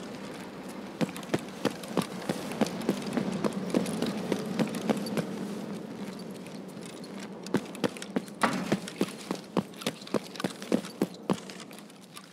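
Footsteps tread on hard pavement at a steady pace.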